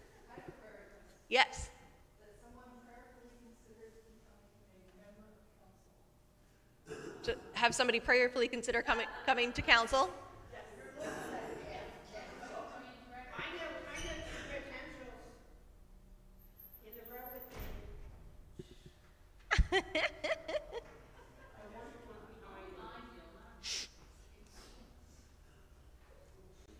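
A woman speaks calmly into a microphone in an echoing hall.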